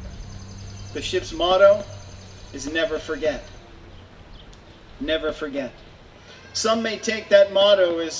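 A man speaks formally into a microphone, heard through loudspeakers outdoors.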